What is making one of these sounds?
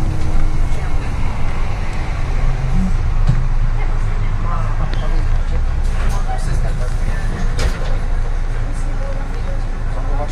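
Loose parts of a bus rattle and clatter as it drives.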